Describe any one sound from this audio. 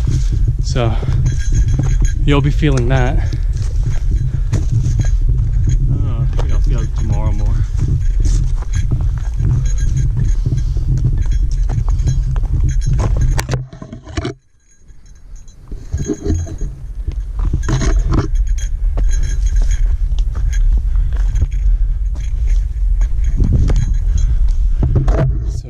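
A man breathes hard close by while hiking.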